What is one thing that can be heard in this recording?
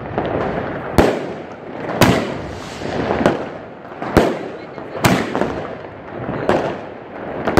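Fireworks burst with loud bangs.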